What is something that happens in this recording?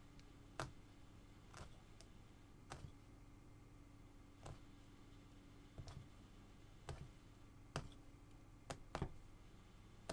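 A punch needle pokes through stretched cloth with soft repeated thumps.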